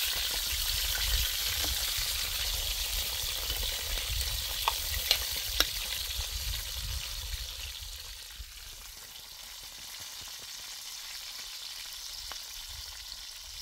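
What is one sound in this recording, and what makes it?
A metal spoon clinks against a pan.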